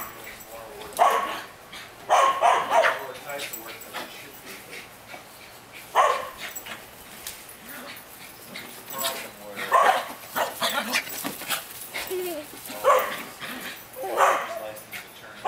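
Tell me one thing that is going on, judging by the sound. A woman talks and laughs with animation nearby.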